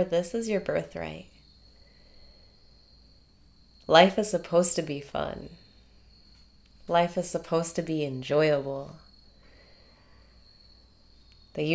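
A young woman speaks cheerfully and close by, in short bursts with pauses.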